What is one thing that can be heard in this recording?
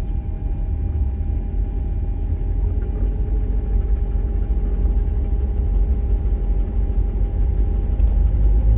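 Tyre and road noise rumbles inside a car moving on a highway.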